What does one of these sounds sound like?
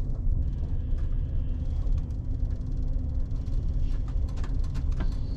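Train wheels click and clatter on the rails.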